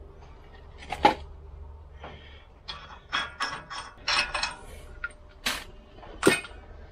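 Metal parts clink and tap against each other.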